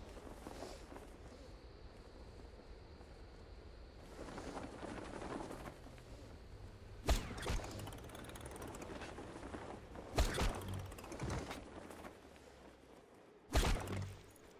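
Wind rushes steadily past a gliding parachute.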